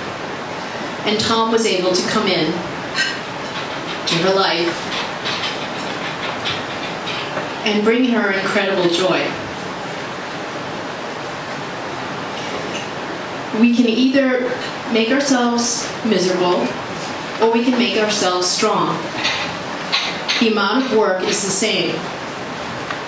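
A woman speaks calmly through a microphone and loudspeakers, in bursts with pauses.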